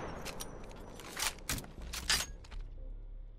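A rifle is reloaded with metallic clicks and clacks.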